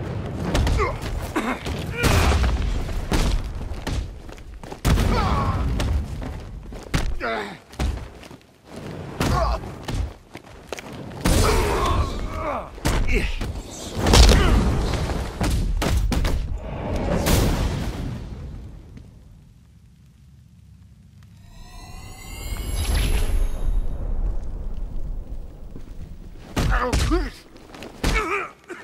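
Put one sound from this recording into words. Heavy punches and kicks land with dull thuds in quick succession.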